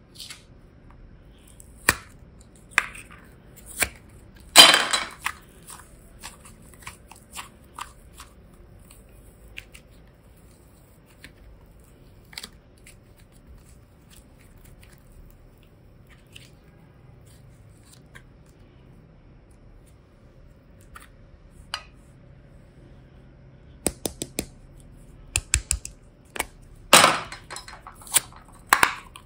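Plastic cases click and snap open and shut.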